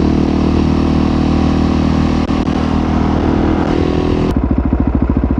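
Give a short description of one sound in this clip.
A motorcycle engine drones steadily while riding along.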